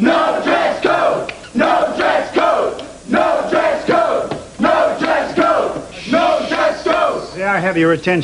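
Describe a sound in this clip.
A crowd of young people chants loudly in unison.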